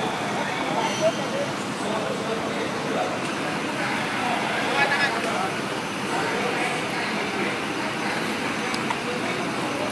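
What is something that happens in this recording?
Engines of fire trucks idle nearby outdoors.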